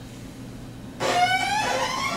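A young woman sings a long, rising note into a microphone.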